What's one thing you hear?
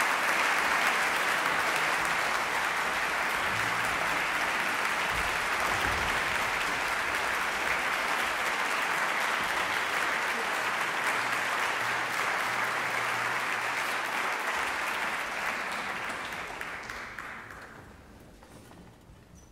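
A large audience applauds in an echoing concert hall, then the clapping fades away.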